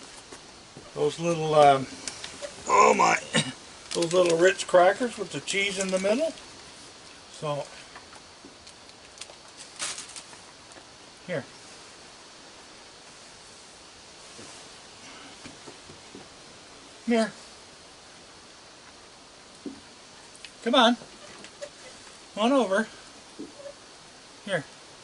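A man talks calmly and softly close by.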